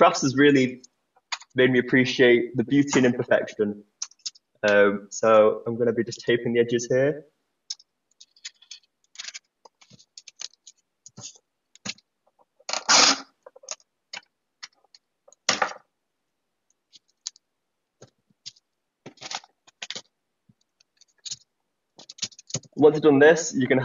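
Cardboard rustles and scrapes as it is handled.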